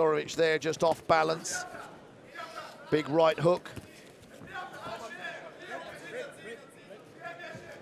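Gloved punches thud as two fighters trade blows.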